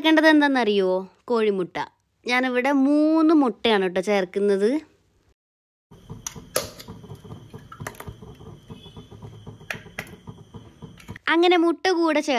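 An egg cracks against the rim of a metal pot.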